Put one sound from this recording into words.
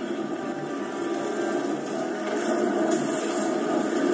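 Flames roar and whoosh, growing louder.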